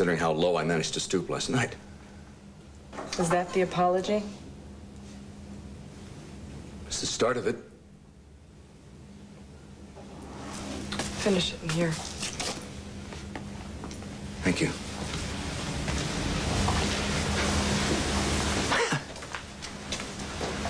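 A middle-aged man speaks in a low voice.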